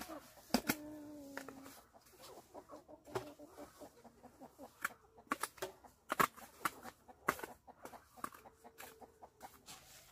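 A trowel scrapes wet mortar along brick.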